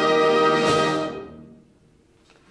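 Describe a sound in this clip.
A band holds a loud final chord in an echoing hall, then stops.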